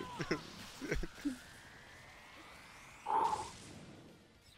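A powerful energy beam blasts with a rising whoosh.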